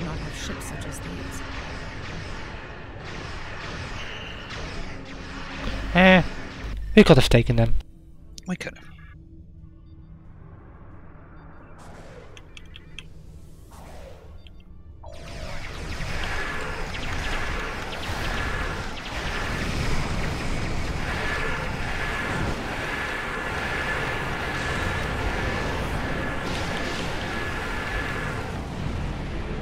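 Explosions boom as starships battle.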